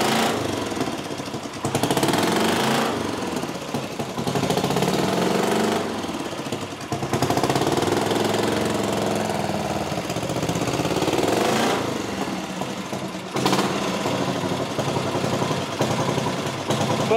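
A motorcycle engine revs up and down loudly.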